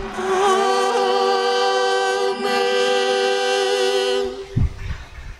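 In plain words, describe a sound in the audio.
A young man sings a long, steady note through a microphone.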